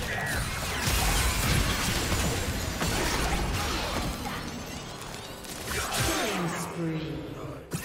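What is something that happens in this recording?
Spell effects crackle and burst in a fast fight.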